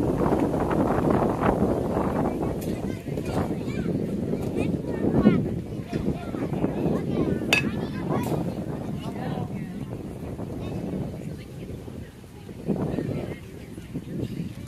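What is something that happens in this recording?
Adults and children chatter and call out nearby outdoors.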